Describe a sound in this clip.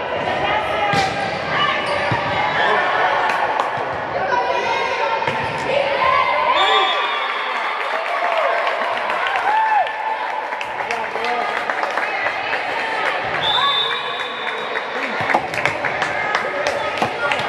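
Many players shout and call out across a large echoing hall.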